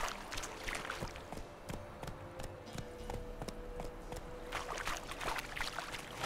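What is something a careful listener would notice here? Horse hooves clop steadily on soft ground.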